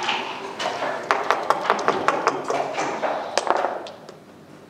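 Dice rattle rapidly in a cup.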